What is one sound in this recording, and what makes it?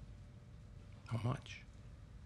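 An older man speaks softly close by.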